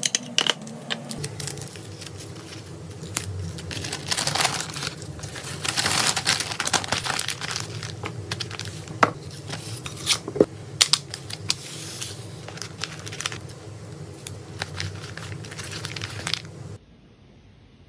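Paper crinkles and rustles as it is folded.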